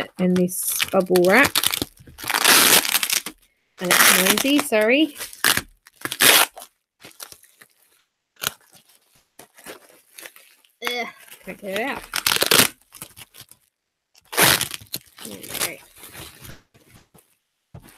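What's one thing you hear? Plastic bubble wrap crinkles and rustles as hands handle it.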